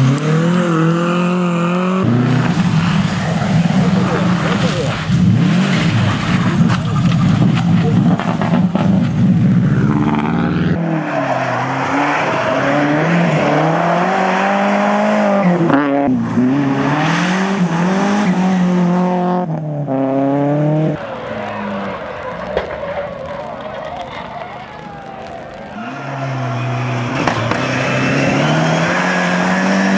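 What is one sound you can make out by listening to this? A rally car engine roars loudly as it speeds past, revving up and down through the gears.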